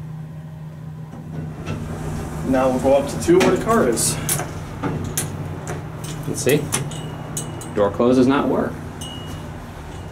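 Elevator doors slide open and shut.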